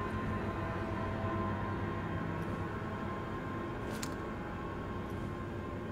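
A cardboard box lid rustles as it is lifted open.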